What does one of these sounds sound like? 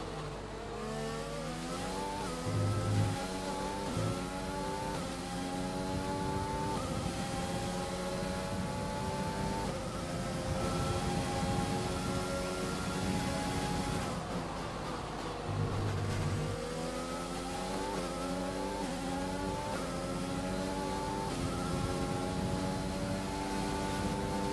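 A racing car engine whines, rising in pitch through the gears and dropping as it brakes.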